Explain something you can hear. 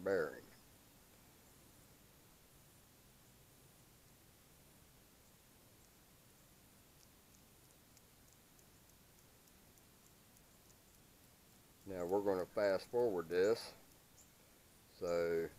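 A man talks calmly and close by, in short bursts with long pauses.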